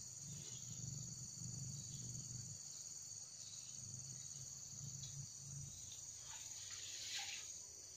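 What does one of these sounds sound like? Water trickles softly around logs in a stream.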